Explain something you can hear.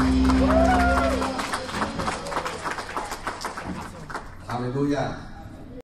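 A band plays music on drums, bass and electric guitar.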